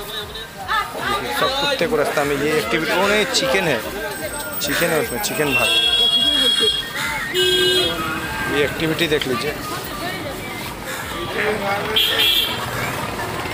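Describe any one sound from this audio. Several men talk loudly nearby outdoors.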